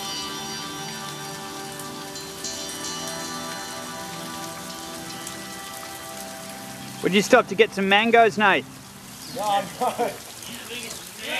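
Paddles dip and splash in calm water.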